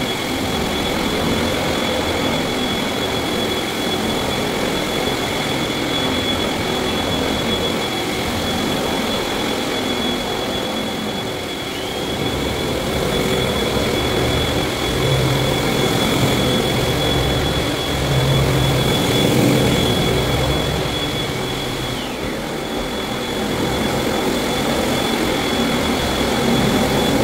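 A floor buffing machine hums and whirs steadily.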